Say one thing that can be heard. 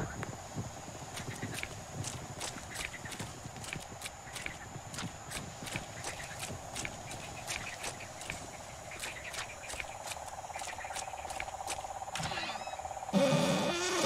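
Footsteps crunch and rustle through undergrowth.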